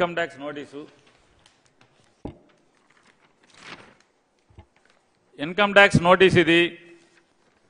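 A middle-aged man speaks emphatically into a microphone.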